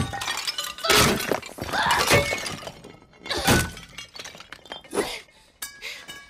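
Heavy blows smash and clatter.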